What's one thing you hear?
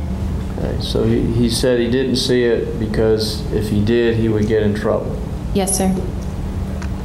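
A man speaks calmly and clearly.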